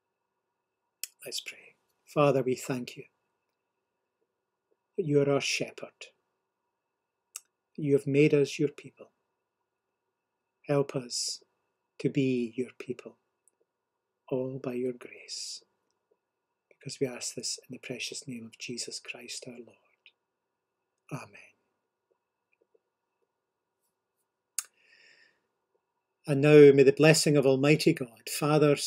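An older man speaks calmly and slowly into a microphone, pausing often.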